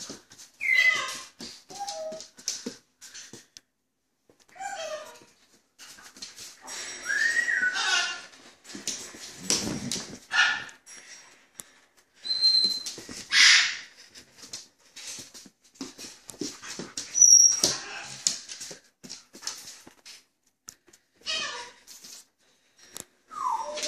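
A dog's paws click on a hard floor.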